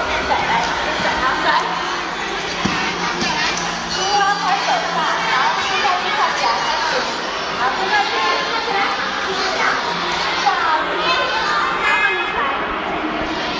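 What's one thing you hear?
Many young children chatter and shout throughout, in a large echoing hall.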